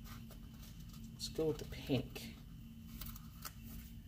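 A sticker peels off a backing sheet.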